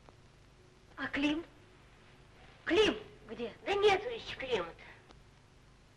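A woman speaks in short, lively bursts nearby.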